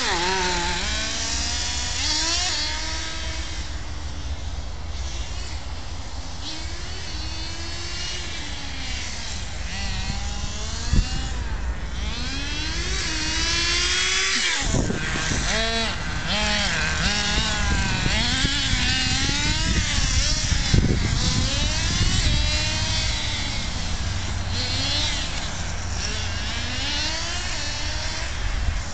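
A small electric motor whines high, rising and falling in pitch as a toy car races around.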